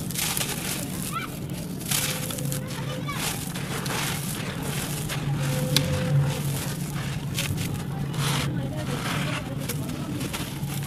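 Hands scoop and crumble dry sandy soil, which rustles and patters as it falls.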